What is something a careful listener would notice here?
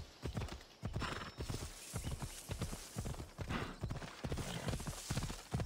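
A horse's hooves thud in a quick gallop.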